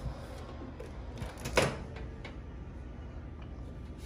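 A microwave door pops open.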